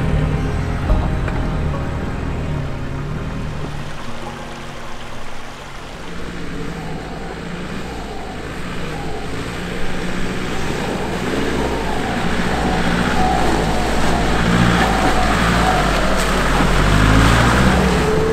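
A four-wheel-drive engine rumbles and strains as the vehicle crawls over rough ground.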